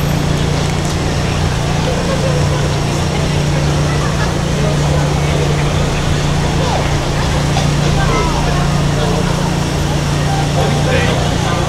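A crowd of people chatters in a busy street outdoors.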